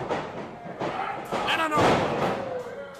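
A wrestler slams onto the ring mat with a loud thud.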